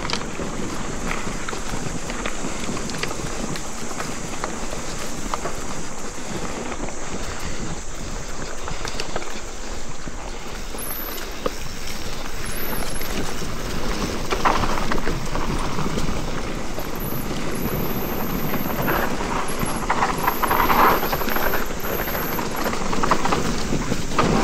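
Bicycle tyres crunch and rumble over a dirt trail.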